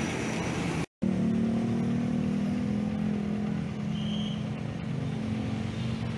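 Car engines idle and hum steadily in slow traffic.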